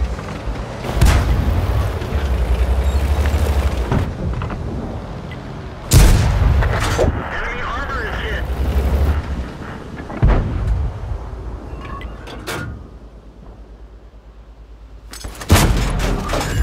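A tank cannon fires with loud, sharp booms.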